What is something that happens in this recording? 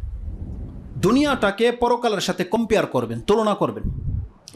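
A man speaks with animation into a clip-on microphone, close by.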